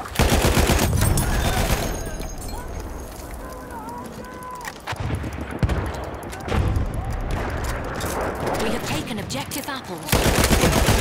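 A machine gun fires rapid, loud bursts.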